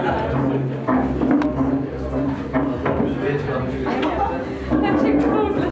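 A crowd of men and women chatter loudly indoors.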